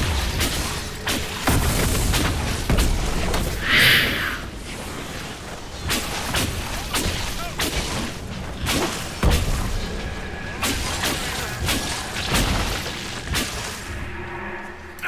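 Magic blasts and weapon blows clash in a fast fight.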